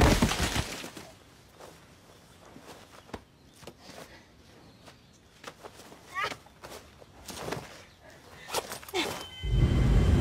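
Dry branches crackle and rustle as a person crawls through brush.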